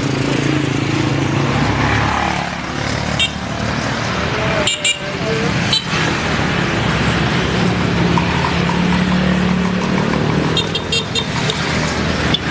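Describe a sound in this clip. Motorcycle engines hum and rumble steadily as scooters ride past close by.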